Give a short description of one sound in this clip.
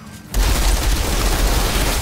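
A large winged creature shrieks.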